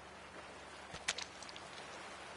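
A fishing lure splashes into water.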